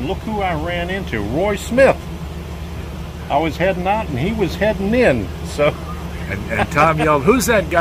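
A second elderly man talks and laughs close by.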